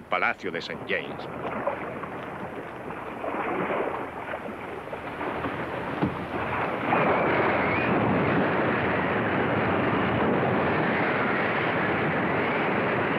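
Wind and waves roar around a boat at sea.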